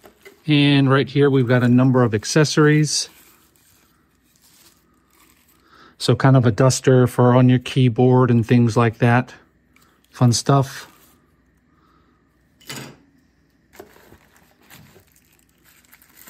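Tissue paper rustles and crinkles.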